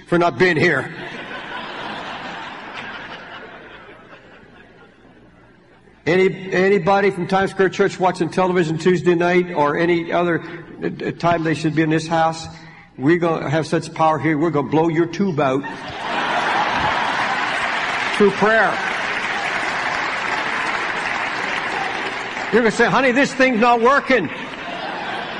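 An elderly man preaches with animation through a microphone.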